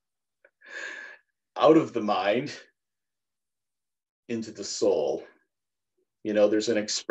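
A middle-aged man speaks cheerfully over an online call, with short pauses.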